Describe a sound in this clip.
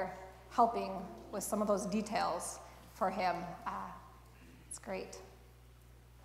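A woman speaks calmly in a large echoing hall.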